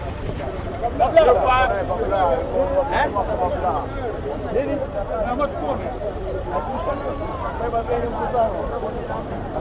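Men shout loudly in a crowd.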